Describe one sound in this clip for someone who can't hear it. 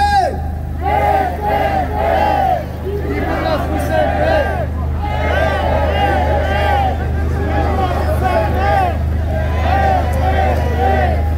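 A crowd of men and women chants together outdoors.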